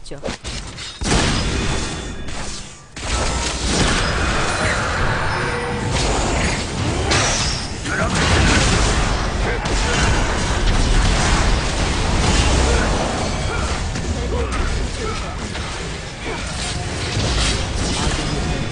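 Game sound effects of spells and fighting clash and burst loudly.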